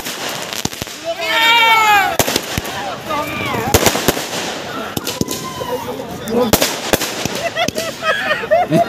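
Rockets whistle as they shoot up.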